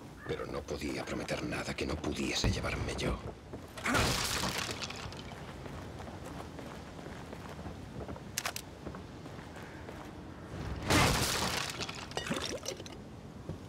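Footsteps thud on wooden boards and stone.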